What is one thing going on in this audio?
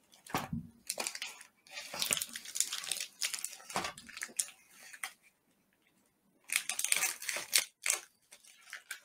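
A knife blade cuts through a plastic food pouch.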